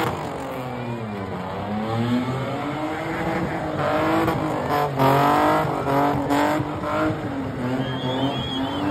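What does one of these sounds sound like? A car engine revs loudly, rising and falling.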